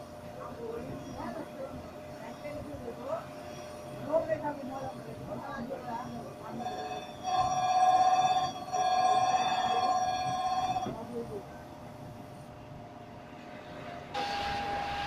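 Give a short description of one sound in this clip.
A machine motor hums steadily.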